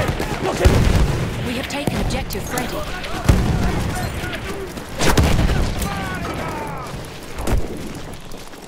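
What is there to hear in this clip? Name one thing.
Explosions boom nearby with deep rumbling.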